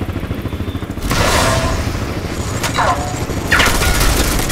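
A weapon fires in loud, sudden blasts.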